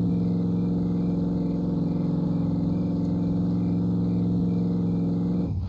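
A pickup truck's engine hums steadily as it drives along a road.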